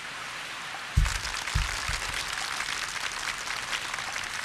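A golf ball lands and bounces on the grass.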